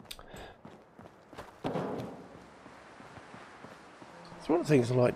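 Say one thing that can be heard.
Footsteps crunch over gravel and rubble.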